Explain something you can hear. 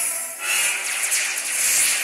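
Laser blasts zap in quick bursts.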